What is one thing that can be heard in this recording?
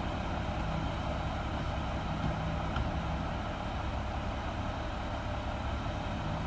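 A hydraulic lift on a garbage truck whines.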